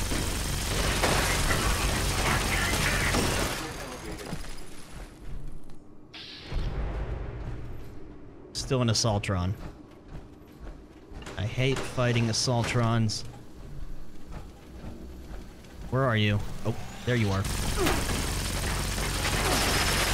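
Gunfire crackles and roars in rapid, loud bursts.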